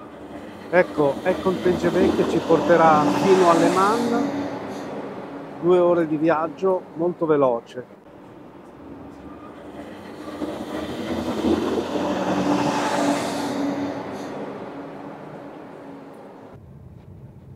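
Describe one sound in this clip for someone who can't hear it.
A high-speed train rushes past close by with a loud rushing whoosh that swells and fades.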